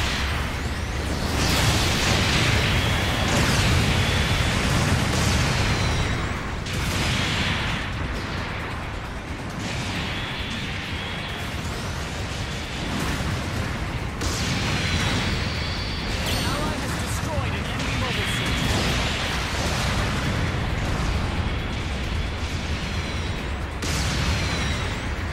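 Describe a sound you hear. Beam weapons fire with sharp zaps and blasts.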